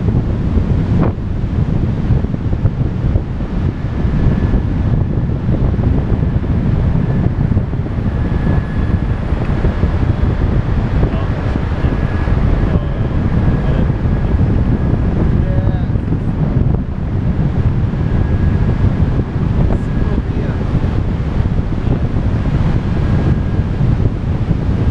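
Strong wind rushes and buffets loudly throughout.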